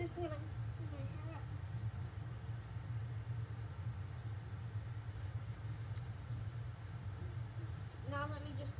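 A young girl speaks briefly close by.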